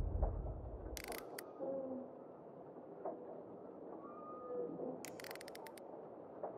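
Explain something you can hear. Soft menu clicks tick in quick bursts.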